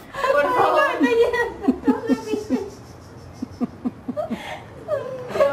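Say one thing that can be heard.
A girl laughs in short bursts close by.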